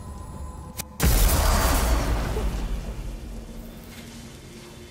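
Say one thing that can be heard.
A rushing whoosh bursts out suddenly and slowly fades.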